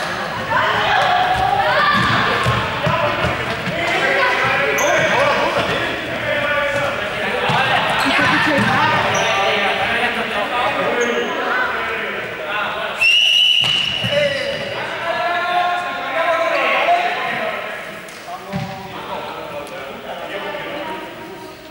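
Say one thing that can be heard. Young people shout and call out to each other in a large echoing hall.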